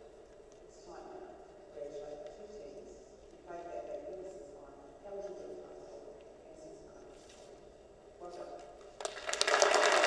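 A singer's voice rings out through loudspeakers in a large echoing hall.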